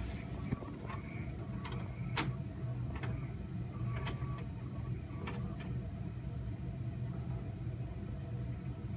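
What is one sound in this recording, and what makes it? A television plays a tape with a low, steady hum and hiss.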